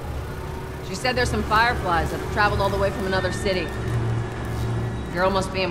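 A woman answers calmly.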